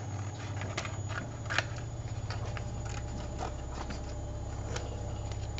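Paper rustles and taps softly as hands handle it close by.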